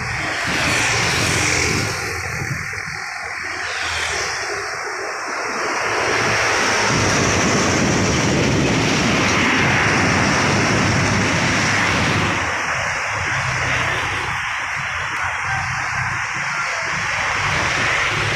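Motorbikes ride past on a road.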